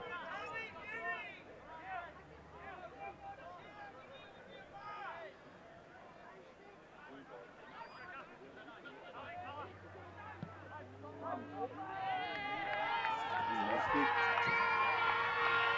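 A crowd of spectators chatters and calls out in the open air.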